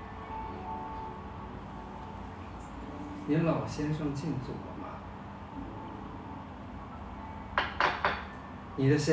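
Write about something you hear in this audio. A spoon clinks against a teacup.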